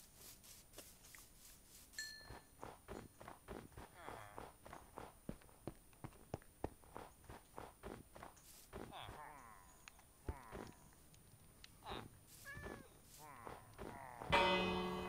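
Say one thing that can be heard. Footsteps crunch on snow and grass at a steady walking pace.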